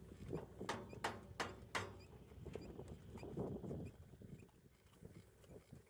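A thick cable scrapes and drags over rough ground.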